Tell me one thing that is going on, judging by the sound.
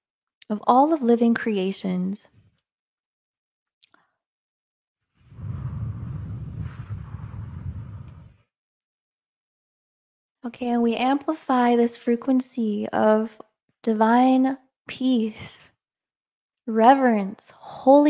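A young woman speaks close into a microphone with animation, in pauses, heard over an online call.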